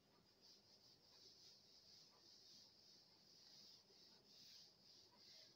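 A cloth duster rubs and swishes across a chalkboard.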